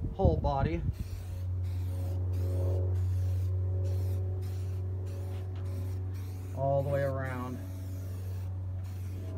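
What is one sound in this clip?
A spray can hisses as it sprays paint.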